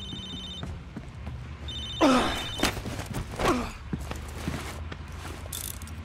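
A body thuds to the floor in a brief scuffle.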